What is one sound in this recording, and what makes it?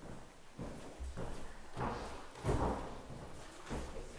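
Footsteps thud on wooden steps.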